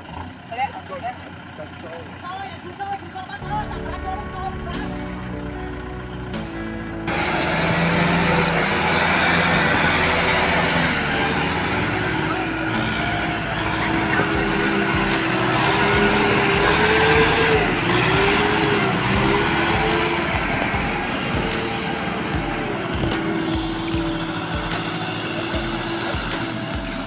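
Tractor engines rumble and rev loudly while straining through mud.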